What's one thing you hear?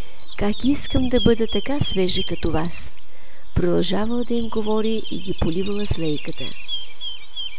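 A young woman sings.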